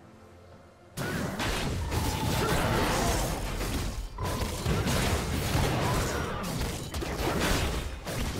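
Video game combat sound effects clash, crackle and boom.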